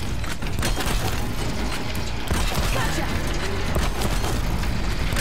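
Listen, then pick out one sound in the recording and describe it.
Explosions and metallic clanks burst as a large machine creature is hit.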